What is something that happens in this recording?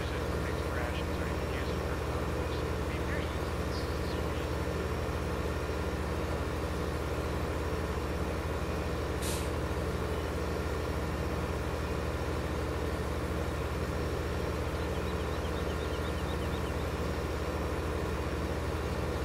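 A tractor engine drones steadily as it pulls a planter.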